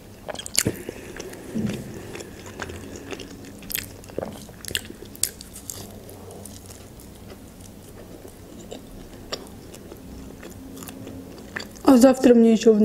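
Food crunches and squishes softly as a young woman chews close to a microphone.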